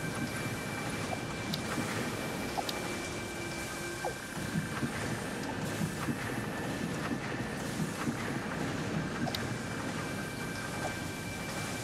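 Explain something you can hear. Soft interface clicks sound as menu options are selected.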